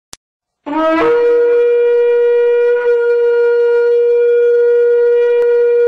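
A ram's horn sounds one long, steady blast.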